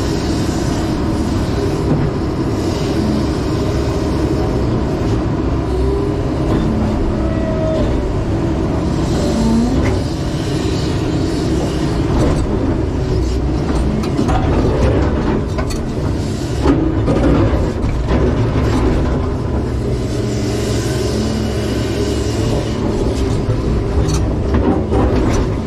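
A diesel engine rumbles steadily from inside an excavator cab.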